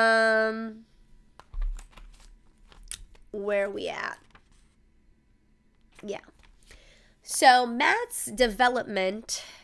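A young woman speaks softly and expressively, close to a microphone.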